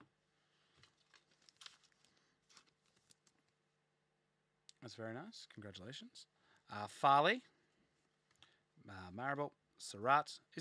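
Trading cards rustle and slide against each other in hand.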